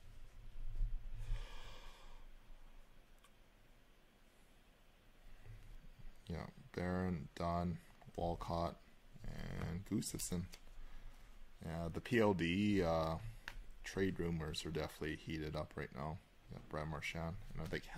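Stiff cards slide and flick against each other as they are flipped through by hand.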